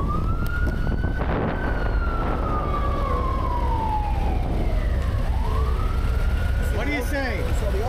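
A motorcycle engine hums and shifts in pitch as it rides.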